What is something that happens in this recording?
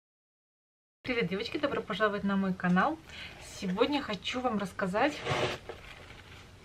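A young woman speaks close to a microphone, calmly and with animation.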